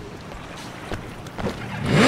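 A motorcycle engine starts up.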